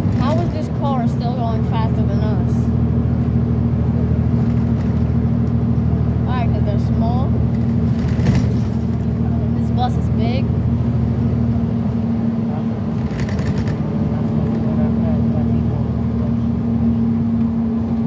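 Tyres roll on the road outside.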